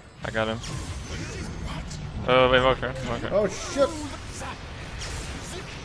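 Game characters clash in combat with sharp hits.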